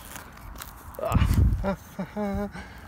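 A shovel digs into soil with a dull thud.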